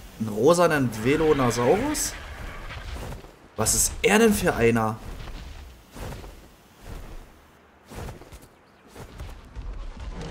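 A large bird's wings flap in heavy beats.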